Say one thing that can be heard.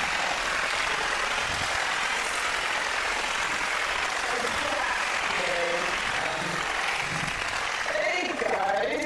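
A studio audience laughs and applauds loudly.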